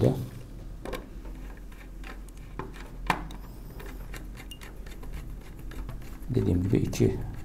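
Small plastic plugs click and rattle as they are pushed onto pins.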